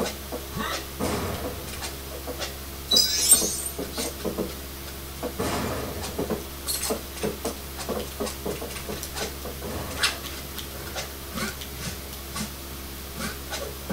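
Video game sound effects and music play from a television speaker.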